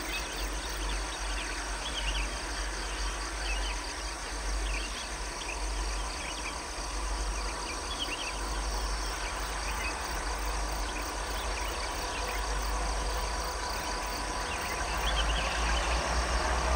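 A diesel locomotive engine rumbles low and grows louder as it draws closer.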